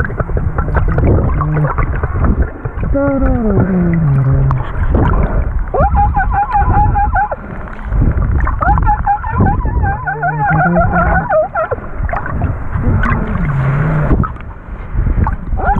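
Water rushes and burbles close by.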